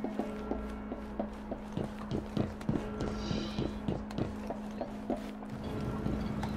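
Footsteps patter quickly on a metal roof.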